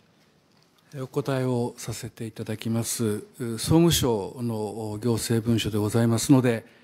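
A middle-aged man speaks calmly and formally through a microphone.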